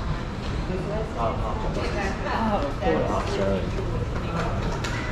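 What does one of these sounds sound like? A man and a woman talk quietly in the distance in a large room.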